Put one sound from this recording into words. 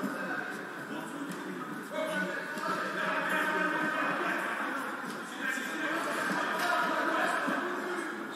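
Men's voices talk and call out in a large echoing hall.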